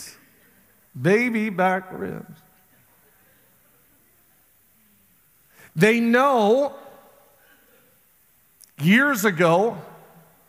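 A middle-aged man speaks with emphasis in short phrases through a microphone, with pauses between them.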